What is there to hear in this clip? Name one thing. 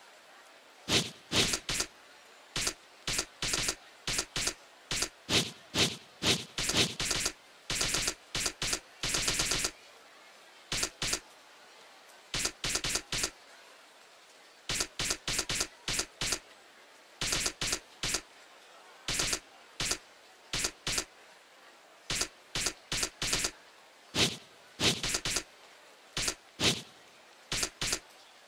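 Short electronic menu blips tick quickly, one after another.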